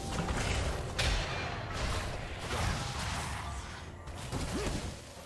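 Video game spell effects whoosh and crackle.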